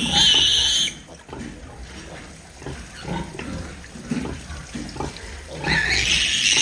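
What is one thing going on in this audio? A sow grunts softly and rhythmically.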